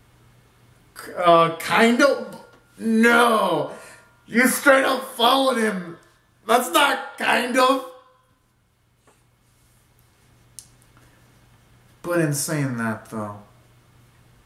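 A young man sings loudly and close by in short phrases.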